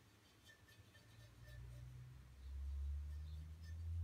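A metal point scratches across a steel gas cylinder.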